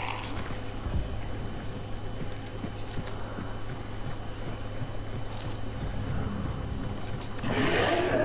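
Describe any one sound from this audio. Footsteps thud on wooden stairs and boards.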